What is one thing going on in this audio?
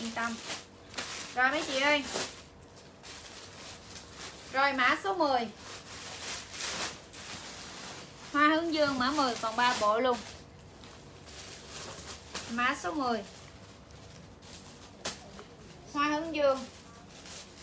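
Fabric rustles as clothing is handled.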